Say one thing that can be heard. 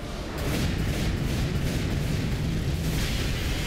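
A magic blast explodes with a loud roaring burst.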